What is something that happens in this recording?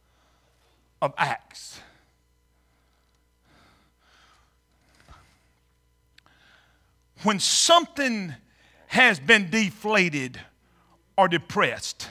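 A middle-aged man speaks calmly into a microphone, with pauses between phrases.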